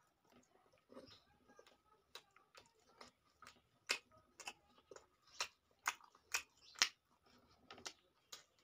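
Fingers squish and mix soft rice close up.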